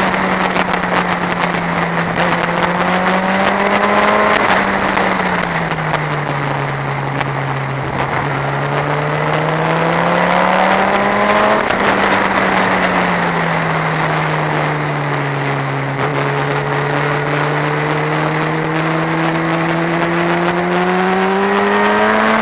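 A motorcycle engine roars close by, rising and falling in pitch as it speeds up and shifts gears.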